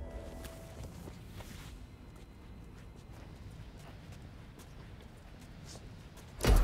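A body is dragged across a hard floor.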